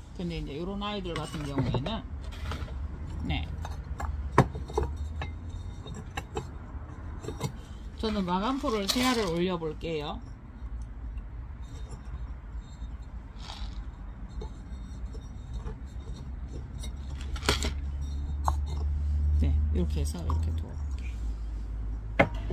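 Clay flower pots knock and clink together.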